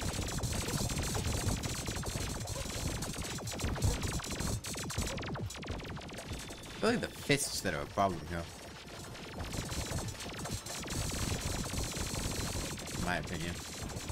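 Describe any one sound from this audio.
Video game weapons fire in rapid, clattering bursts.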